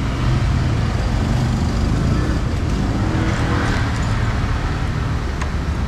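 A switch on a motorcycle handlebar clicks.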